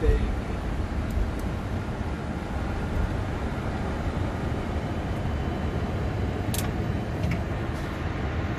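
Jet engines rumble steadily as an airliner taxis.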